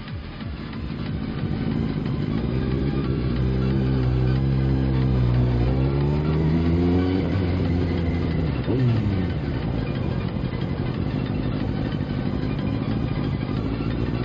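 A vehicle engine rumbles and rises in pitch as it speeds up.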